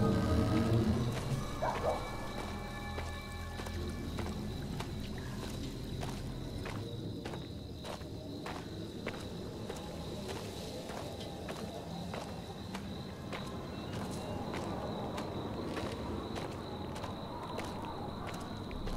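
Rain patters steadily on leaves outdoors.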